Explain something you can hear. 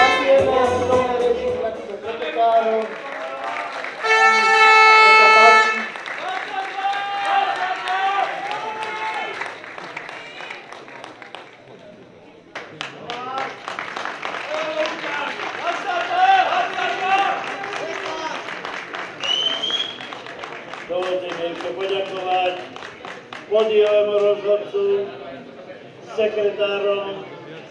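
A crowd cheers and whistles in a large echoing hall.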